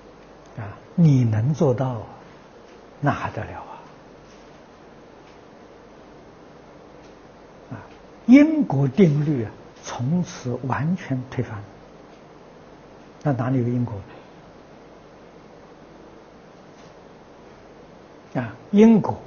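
An elderly man speaks calmly into a close microphone, with pauses.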